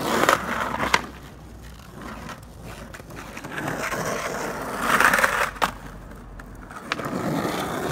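A skateboard tail snaps and clacks sharply on the ground.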